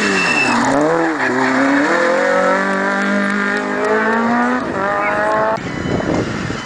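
A rally car engine roars and revs hard as the car accelerates away.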